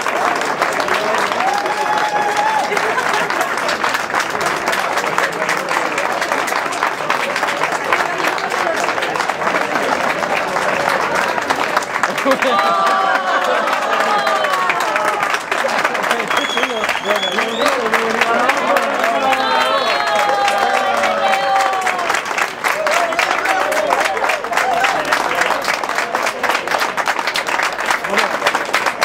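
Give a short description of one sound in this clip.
A crowd claps steadily outdoors.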